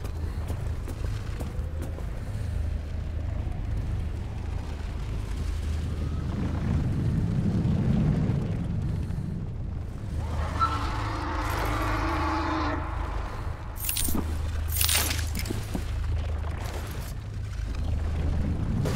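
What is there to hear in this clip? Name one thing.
Footsteps squelch through mud and water.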